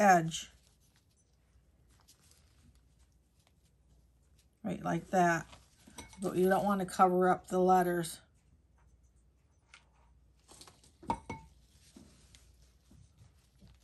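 Paper rustles and taps on a table.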